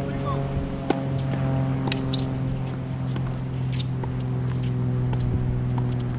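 Tennis rackets strike a ball with sharp pops, back and forth outdoors.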